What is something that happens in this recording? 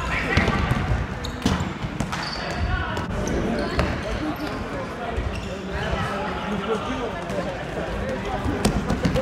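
Players' shoes squeak sharply on a hard court in a large echoing hall.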